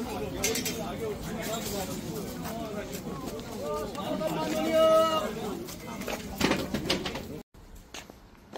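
A crowd of men and women chatter all around nearby.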